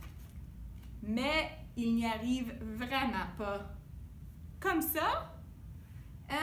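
A young woman reads aloud expressively, close to a microphone.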